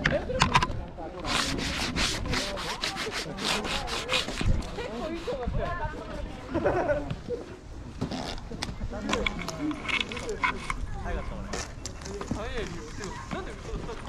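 Boots crunch through snow with steady footsteps.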